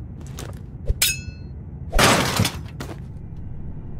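A metal grate rattles and clangs open.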